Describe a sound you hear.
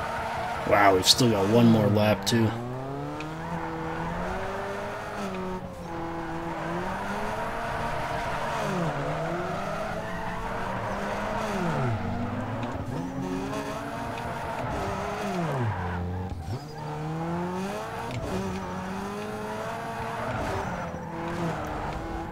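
A car engine revs up and down steadily.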